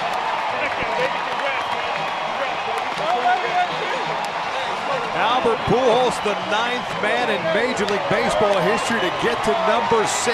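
Men shout and cheer up close.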